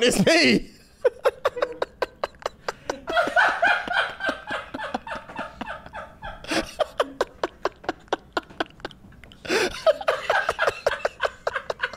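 Two men laugh loudly and helplessly close to microphones.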